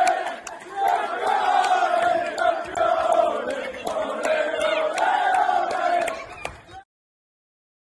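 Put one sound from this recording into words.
A group of young men cheer and shout loudly outdoors.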